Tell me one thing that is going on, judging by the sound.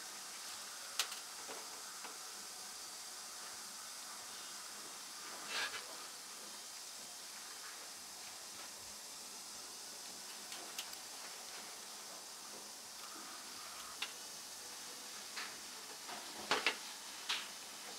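Metal surgical instruments click and tap now and then.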